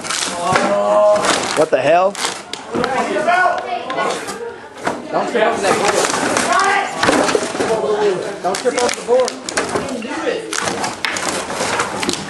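Wooden boards clatter and knock as they are shifted.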